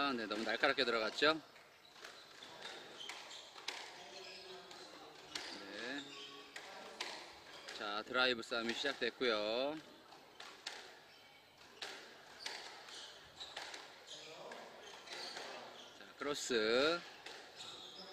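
Sneakers squeal sharply on a wooden floor.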